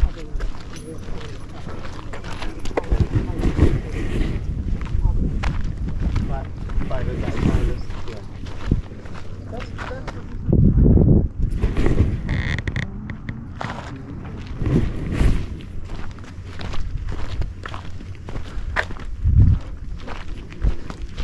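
Footsteps crunch on sandy ground.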